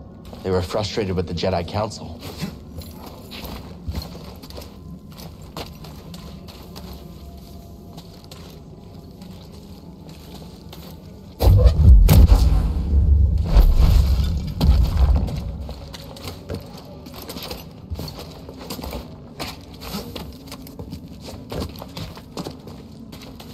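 Footsteps patter on soft ground and stone.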